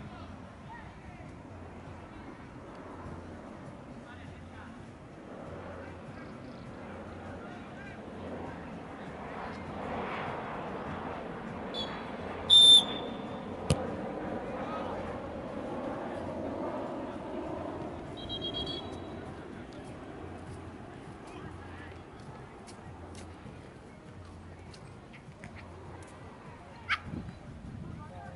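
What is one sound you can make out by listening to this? Players shout and call out across an open field.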